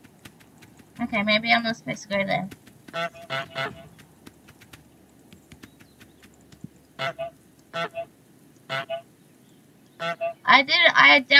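A goose honks loudly in short bursts.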